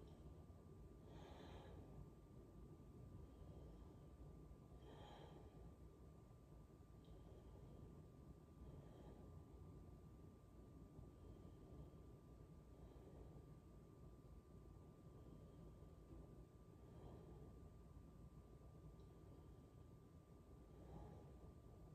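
A woman breathes slowly and deeply nearby.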